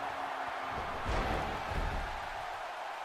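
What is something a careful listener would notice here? A body slams down hard onto a wrestling ring mat with a heavy thud.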